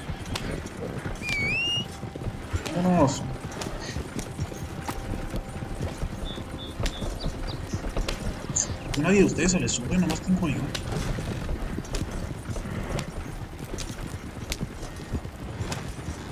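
Wooden wagon wheels rattle and creak over a dirt track.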